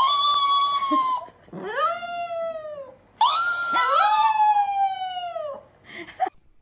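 A small dog whines.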